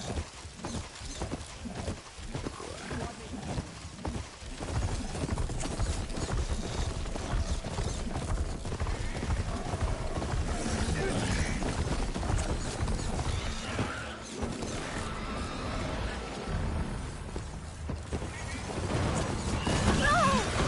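Heavy mechanical footsteps pound rapidly across the ground.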